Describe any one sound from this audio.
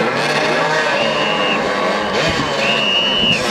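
A referee blows a whistle twice.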